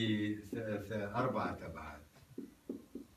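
A man talks calmly.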